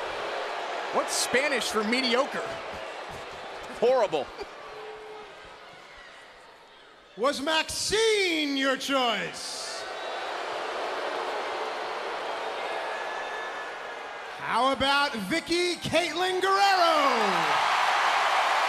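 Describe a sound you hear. A man speaks loudly and with energy into a microphone in a large echoing arena.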